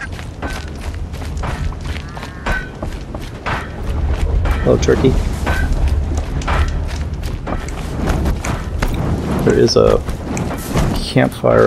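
Quick footsteps run over gravel and wooden planks.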